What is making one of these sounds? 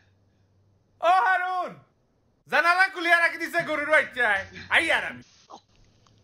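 A man screams in alarm close by.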